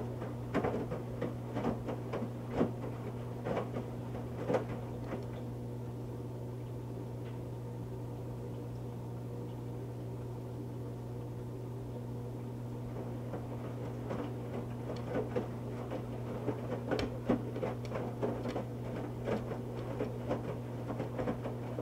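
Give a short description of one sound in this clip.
Wet laundry thumps and sloshes in a turning drum.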